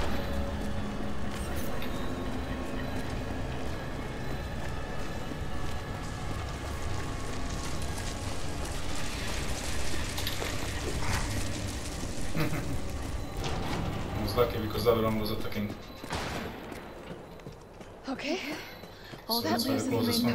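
Footsteps crunch on gravel and clang on metal stairs.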